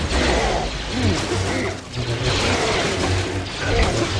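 Blaster shots zap repeatedly.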